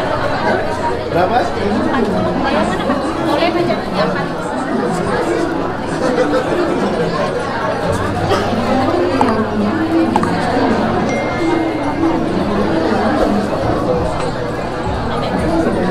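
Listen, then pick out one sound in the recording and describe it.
A crowd of people chatters around the room.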